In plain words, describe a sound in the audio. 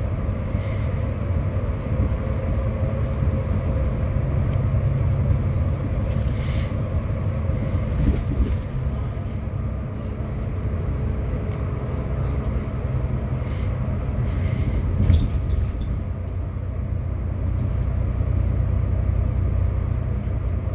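Tyres roll on the road with a low hum.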